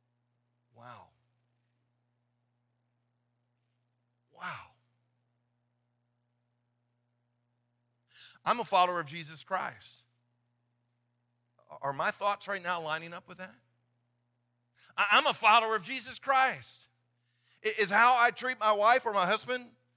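A man speaks with animation through a microphone in a large room, pausing between phrases.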